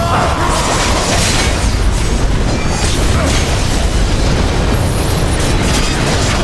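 Fiery blasts roar and burst.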